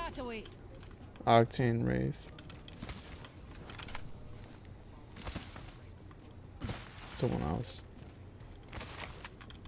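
Quick footsteps patter on grass and pavement.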